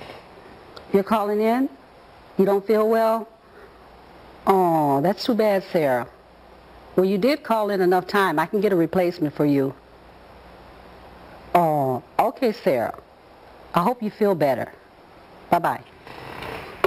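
A woman speaks calmly into a telephone, close by.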